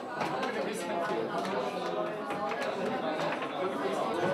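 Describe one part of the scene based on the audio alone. Foosball players clack and rattle against a plastic ball.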